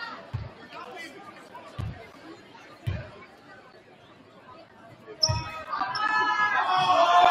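A crowd murmurs and then cheers loudly.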